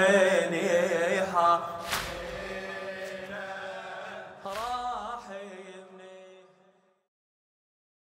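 A young man chants a lament into a microphone, his voice echoing and fading out.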